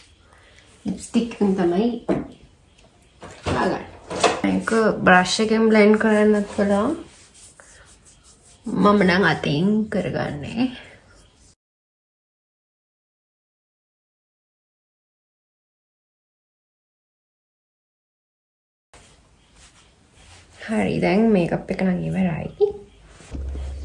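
A young woman talks calmly and close up.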